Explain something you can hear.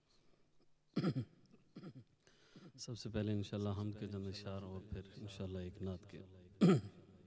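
A man chants melodically into a microphone.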